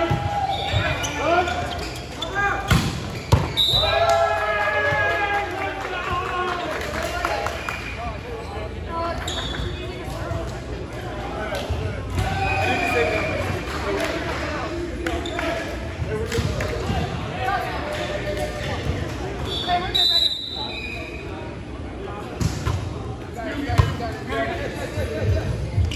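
Players' hands strike a volleyball with sharp slaps.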